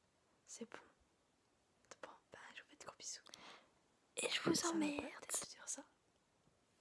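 A young woman speaks softly and close by, in a whispery voice.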